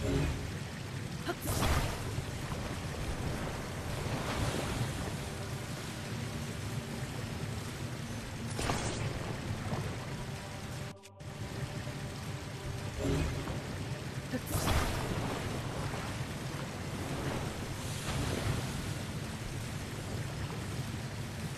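Steam hisses in bursts.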